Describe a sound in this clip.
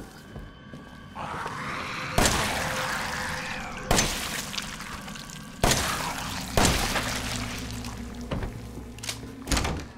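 Footsteps thud slowly on a creaking wooden floor.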